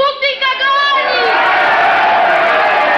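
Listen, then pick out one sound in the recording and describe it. A crowd shouts and jeers.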